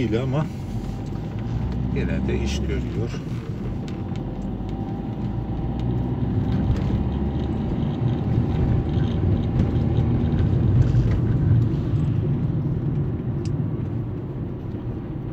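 A car engine hums steadily from inside the car as it drives.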